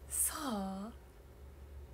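A young woman makes a brief high-pitched exclamation close to a microphone.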